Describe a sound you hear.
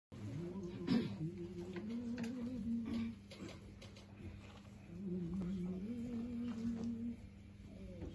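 A man sings long, drawn-out notes nearby.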